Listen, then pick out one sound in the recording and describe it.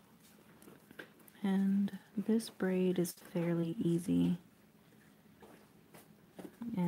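A satin ribbon rustles softly as it is folded into a bow.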